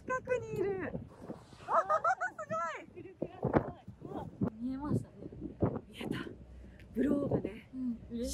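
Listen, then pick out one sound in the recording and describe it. A young woman exclaims with excitement close by.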